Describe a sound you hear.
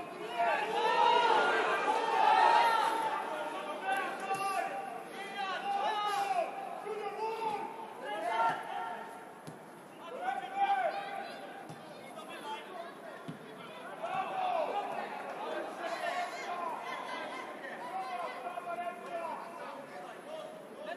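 Male footballers shout to each other across an open outdoor pitch.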